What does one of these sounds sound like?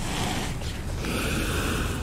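A monster snarls loudly.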